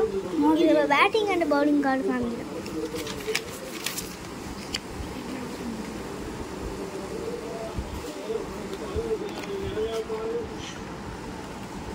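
A cardboard box is opened and its flaps rustle.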